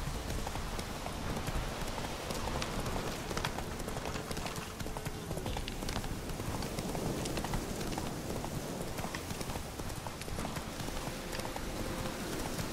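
A horse gallops with fast, heavy hoofbeats on soft ground.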